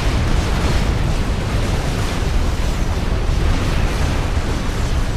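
Explosions rumble deep and low without a break.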